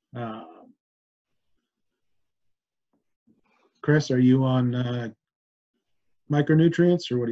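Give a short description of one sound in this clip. A middle-aged man speaks calmly into a microphone close by, with pauses.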